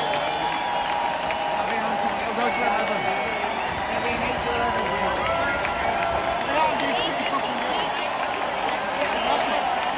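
Live music plays loudly through loudspeakers in a large open space.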